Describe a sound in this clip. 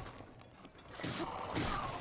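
A sword clangs against metal.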